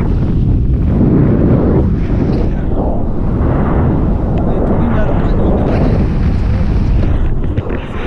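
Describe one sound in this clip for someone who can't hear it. A young woman talks with excitement close to a microphone.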